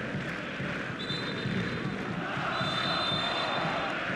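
A referee's whistle blows in short sharp blasts.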